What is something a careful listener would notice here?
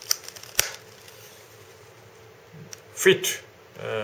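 A snap fastener clicks shut.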